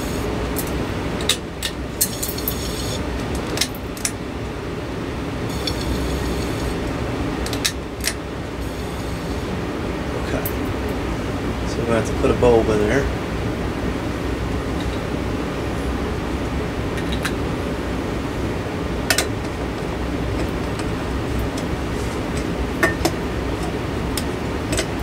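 A glass light globe clinks and scrapes as a hand twists it on a fixture.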